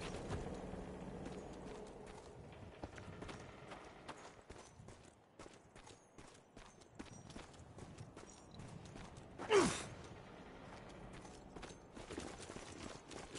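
Boots crunch on dry dirt with footsteps.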